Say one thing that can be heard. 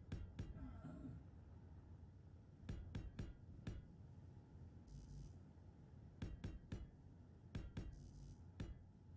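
Heavy metal blocks clunk into place in quick pairs.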